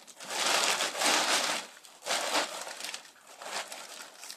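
Loose bits of foam patter onto a metal floor.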